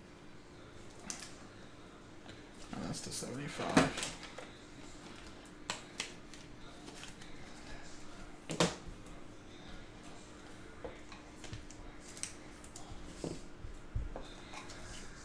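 Trading cards rustle and click as they are shuffled by hand.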